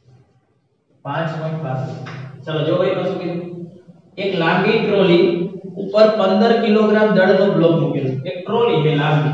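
A young man reads aloud with animation, close by.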